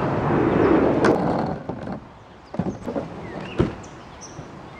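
A canoe scrapes and bumps onto a roof rack.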